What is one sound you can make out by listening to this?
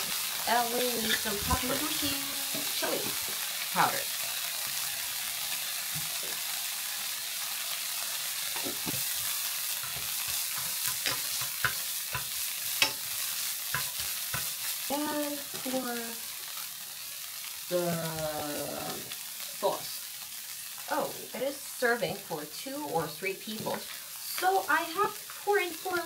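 Food sizzles steadily in a frying pan.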